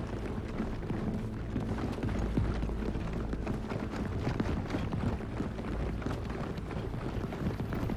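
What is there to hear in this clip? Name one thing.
Boots thud quickly on a hard floor as a person runs.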